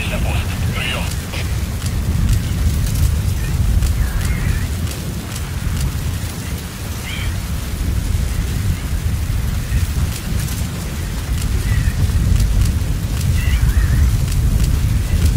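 Strong wind rumbles and blows steadily outdoors.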